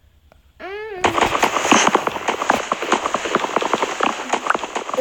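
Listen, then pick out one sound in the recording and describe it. Blocks of wood thud and crack as they are chopped repeatedly.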